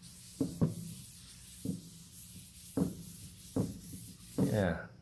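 A hand rubs across a smooth wooden board.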